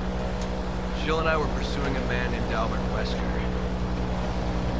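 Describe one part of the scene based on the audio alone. A man answers in a low, calm voice.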